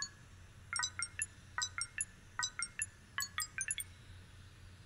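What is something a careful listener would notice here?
Electronic buttons beep in quick bursts as a keypad is pressed.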